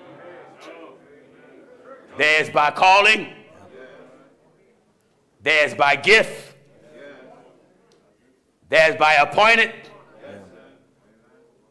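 A man preaches forcefully through a microphone in loud, ringing bursts with pauses between them.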